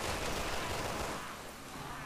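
A gun fires sharp shots.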